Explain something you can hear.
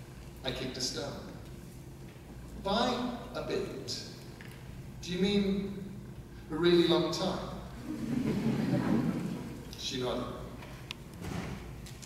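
A man reads aloud expressively into a microphone.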